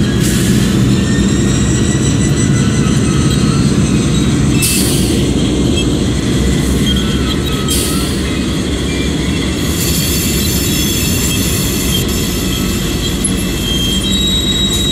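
A diesel locomotive engine rumbles steadily as the train rolls slowly along the track.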